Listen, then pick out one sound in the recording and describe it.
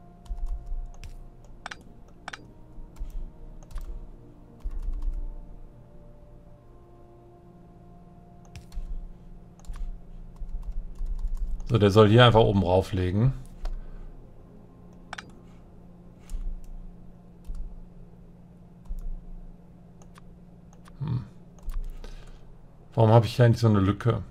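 Short soft clicks sound now and then as pieces are placed.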